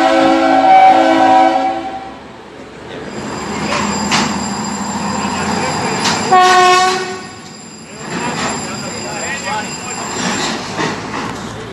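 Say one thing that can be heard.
A train rumbles along the tracks nearby.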